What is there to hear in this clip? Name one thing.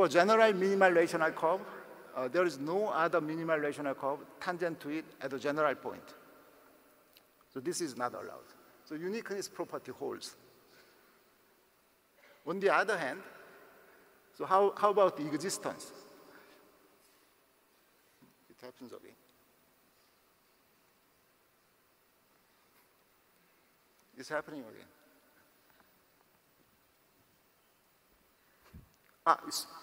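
A man speaks calmly through a microphone in a large echoing hall, with pauses.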